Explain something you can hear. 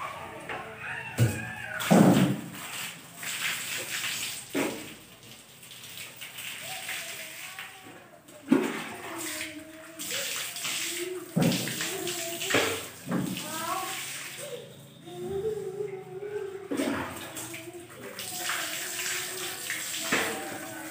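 Water pours from a mug and splashes onto the floor.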